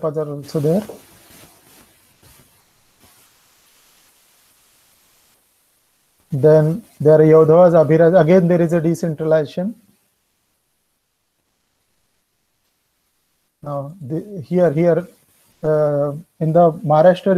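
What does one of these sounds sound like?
A middle-aged man speaks calmly over an online call, in bursts with pauses.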